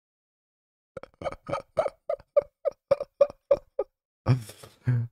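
A young man laughs into a close microphone.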